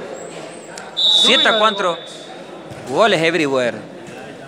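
Young players shout loudly in a large echoing hall.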